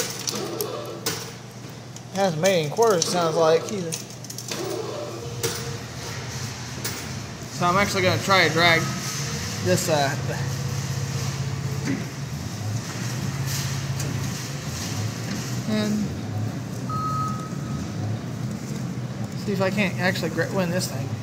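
A claw machine hums steadily.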